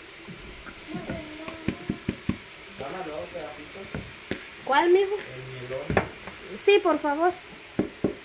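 A woman taps a plastic bowl against a pot.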